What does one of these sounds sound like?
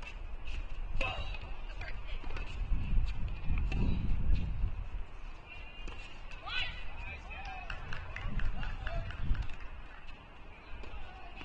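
A tennis ball is struck back and forth with rackets in a quiet, echoing hall.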